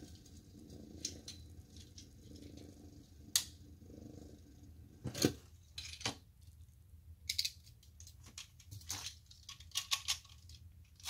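Spinning tops click against each other as they are handled.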